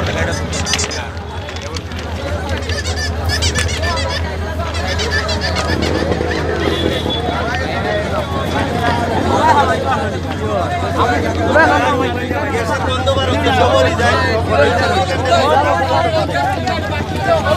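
A crowd of men talk and shout excitedly close by, outdoors.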